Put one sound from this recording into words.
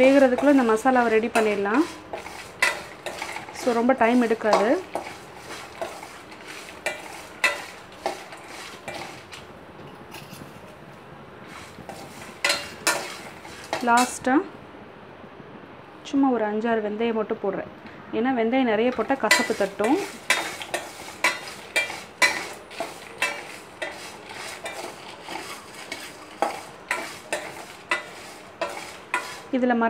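A metal ladle scrapes and clinks against a steel pan.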